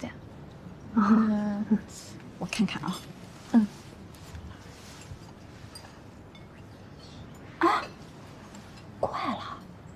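A second young woman answers in a light, teasing voice, close by.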